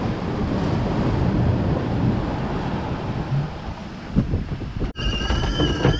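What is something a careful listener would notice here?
Wind rushes and water splashes outdoors at sea.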